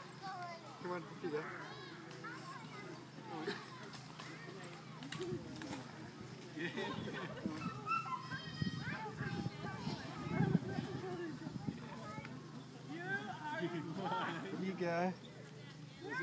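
A baby babbles and squeals.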